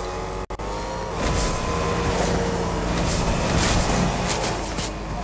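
A car engine hums as a car drives over grass.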